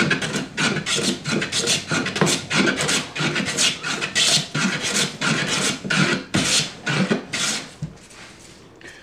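A metal blade rasps back and forth in quick strokes.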